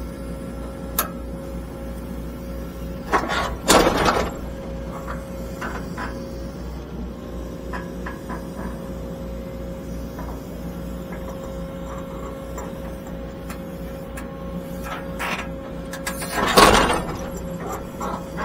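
An excavator's diesel engine hums steadily from inside the cab.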